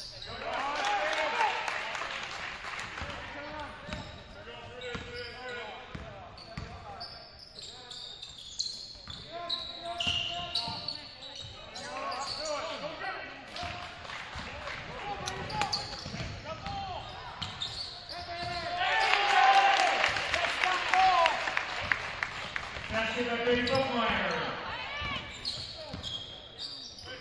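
Sneakers squeak sharply on a hardwood floor.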